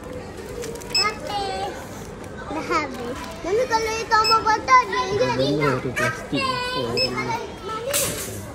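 A young child talks excitedly close by.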